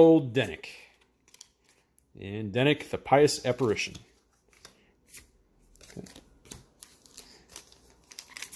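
Playing cards slide and flick against each other in someone's hands.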